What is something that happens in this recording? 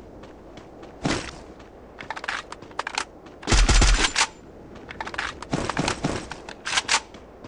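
Rapid gunshots fire in short, sharp bursts.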